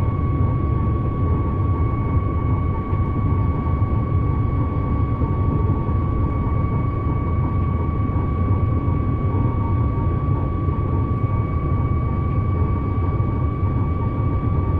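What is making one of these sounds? An electric train motor hums with a steady high whine.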